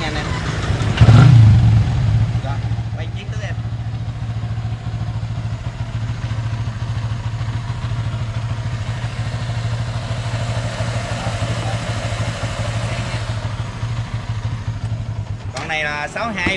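A motorcycle engine starts and idles with a steady low rumble close by.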